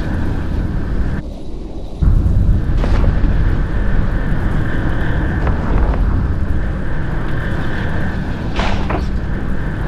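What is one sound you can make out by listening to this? Laser weapons hum and crackle steadily in a video game.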